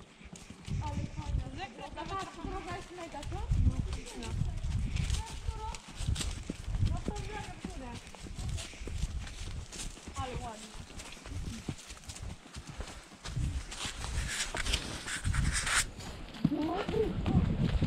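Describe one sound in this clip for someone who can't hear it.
Horse hooves thud softly on a dirt trail.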